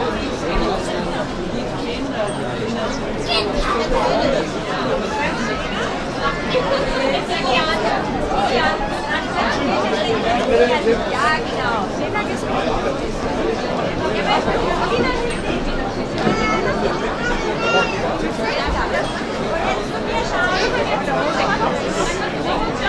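A large crowd of men and women chatters outdoors all around, close by.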